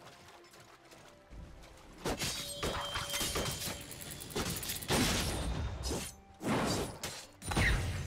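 Video game combat effects clash and burst.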